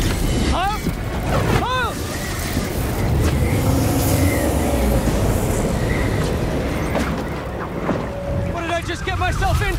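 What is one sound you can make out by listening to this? Flying debris clatters and thuds.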